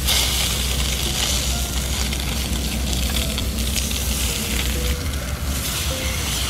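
Meat sizzles steadily in a hot pan.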